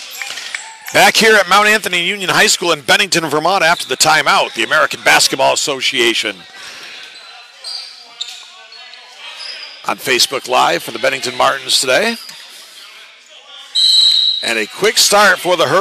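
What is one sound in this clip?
Spectators cheer and shout loudly in a large echoing hall.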